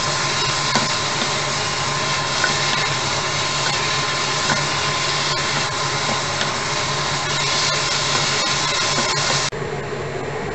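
A wooden spatula scrapes and taps against a frying pan.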